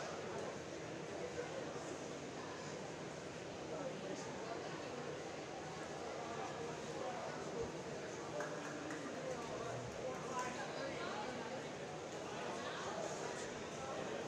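Many men and women chatter at once in a large echoing hall.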